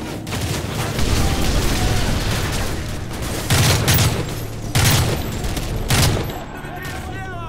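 Loud explosions boom and echo through a large hall.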